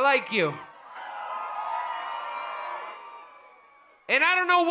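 A crowd cheers and yells.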